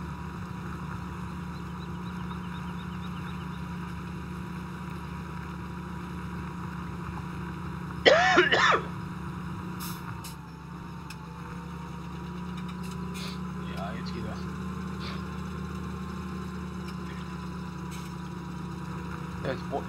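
A tractor engine drones steadily.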